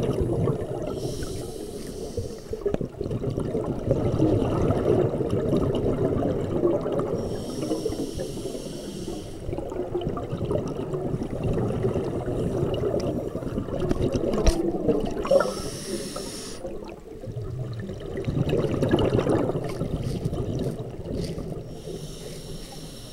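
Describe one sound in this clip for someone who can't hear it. A diver's breath bubbles out in rushing bursts underwater.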